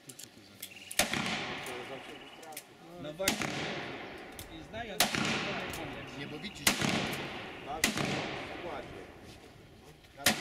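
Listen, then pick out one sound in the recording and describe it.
Pistol shots crack one after another and ring out across open ground.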